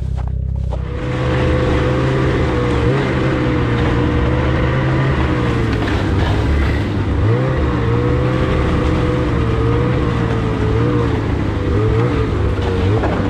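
A snowmobile engine drones as the snowmobile rides along a trail.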